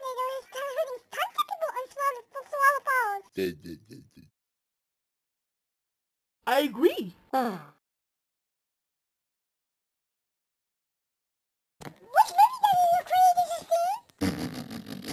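A cartoon character chatters in a high, squeaky voice.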